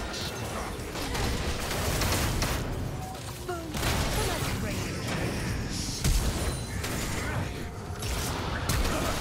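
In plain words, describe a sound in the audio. Magic blasts, clashing hits and spell effects crackle and burst in a hectic fight.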